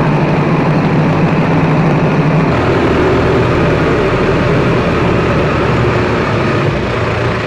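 Large tractor tyres roll over wet pavement.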